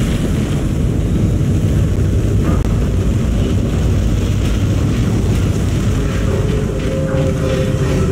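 Heavy boots clank on a metal grating.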